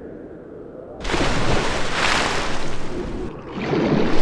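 A body plunges into water with a loud splash.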